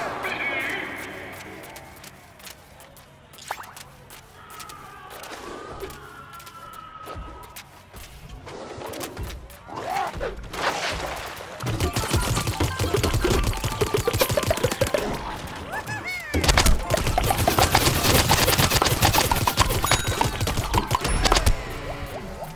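Cartoonish game shots pop in rapid bursts.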